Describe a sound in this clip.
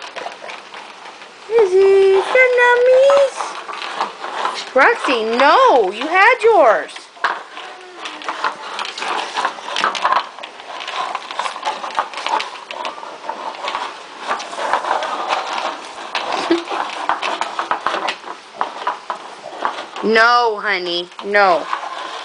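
Dogs eat and lick noisily from plastic bowls.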